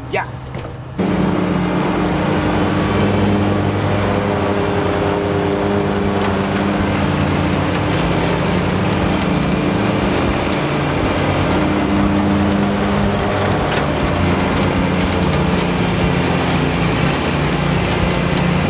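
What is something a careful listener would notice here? A lawn mower engine runs with a steady hum.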